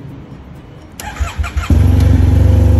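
A motorcycle starter motor cranks briefly.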